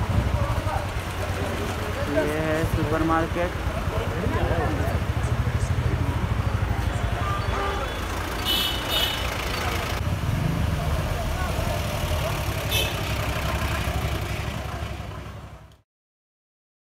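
Traffic rumbles steadily on a busy street.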